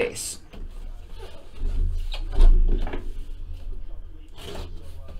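A cardboard box scrapes and rustles in hands.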